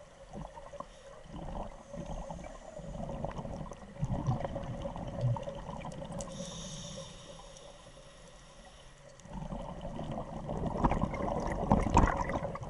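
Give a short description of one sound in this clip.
Scuba bubbles gurgle and rumble in bursts underwater.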